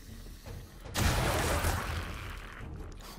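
Zombies growl and snarl close by.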